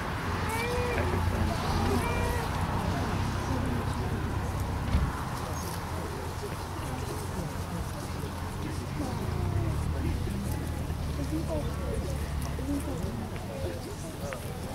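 A crowd of men and women murmur quietly in the distance.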